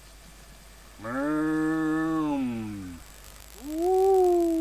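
A cow moos loudly nearby, long and low.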